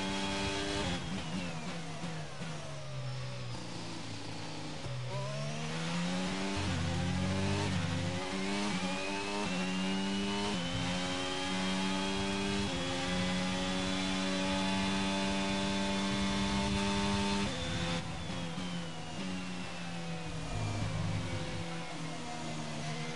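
A racing car engine winds down under braking and then revs back up.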